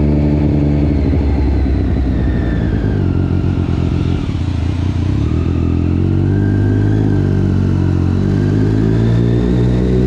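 A motorcycle engine roars steadily, dropping in pitch and then rising again as it speeds up.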